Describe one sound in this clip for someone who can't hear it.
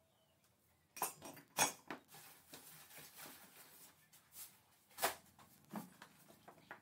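Glassware clinks and knocks on a table.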